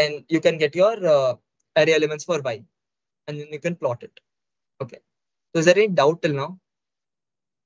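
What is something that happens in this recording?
A young man speaks calmly through a microphone, as if on an online call.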